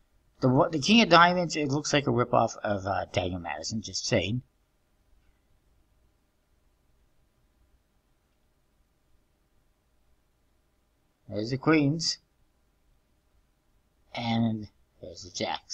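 A man talks casually into a nearby microphone, with pauses.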